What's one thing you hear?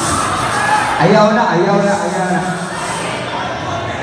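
A young man sings loudly into a microphone through loudspeakers in a large echoing hall.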